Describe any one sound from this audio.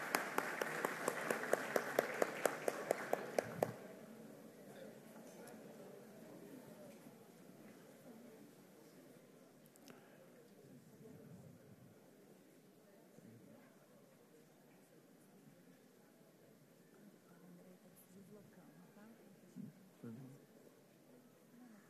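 A crowd of men and women murmurs and chatters.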